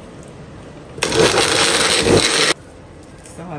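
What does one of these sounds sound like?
A blender whirs loudly in a short burst.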